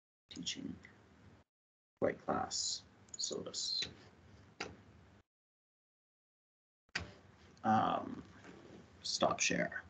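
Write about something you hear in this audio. A man lectures calmly, heard through an online call.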